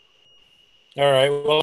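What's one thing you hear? An elderly man speaks through an online call.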